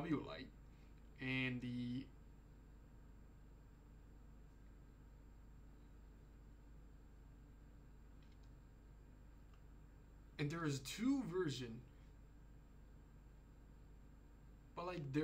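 A young man speaks calmly and close into a microphone, in short bursts with pauses.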